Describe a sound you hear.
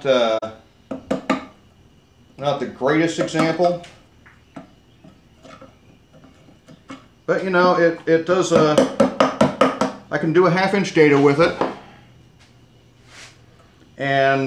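A mallet knocks on a chisel.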